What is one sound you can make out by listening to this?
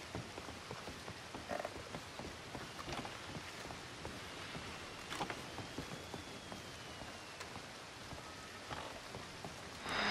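Footsteps tread softly on wooden boards.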